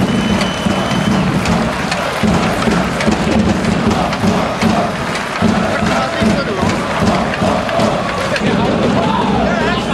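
A large crowd chants loudly in rhythm in a big echoing arena.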